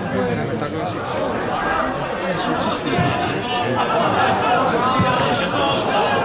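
A crowd chatters and calls out from the stands outdoors.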